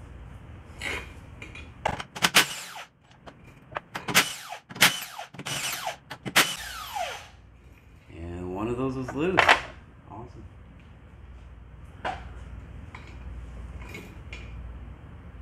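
Metal tools clank and click against car brake parts close by.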